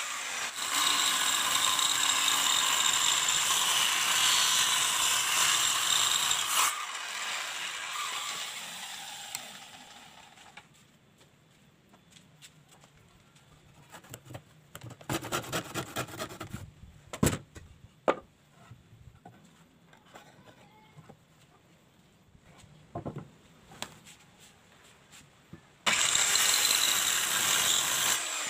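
A circular saw whines loudly as it cuts through wood.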